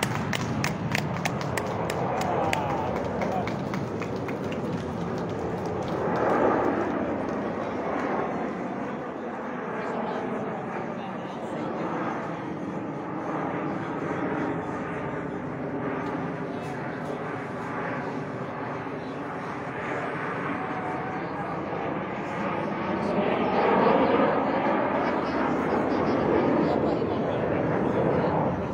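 Jet aircraft roar loudly overhead, swelling and fading as they pass.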